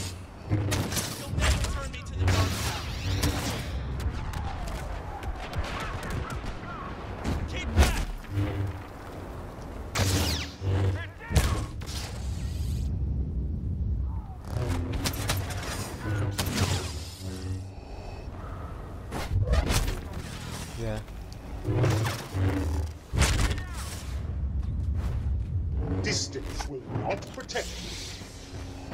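Lightsabers hum and clash with sharp crackling hits.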